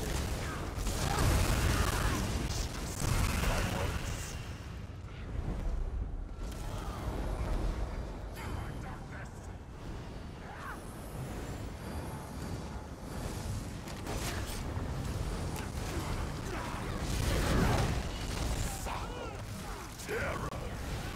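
Spells crackle and boom in a fierce battle.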